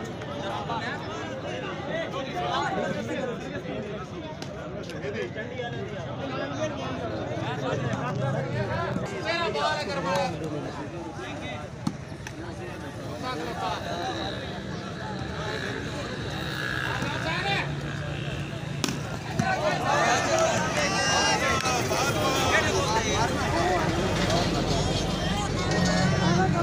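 A large outdoor crowd chatters and calls out.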